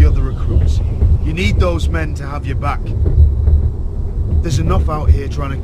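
A second young man answers firmly, close by.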